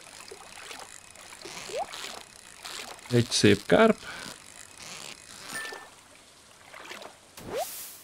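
A fishing reel clicks and whirs as a line is reeled in.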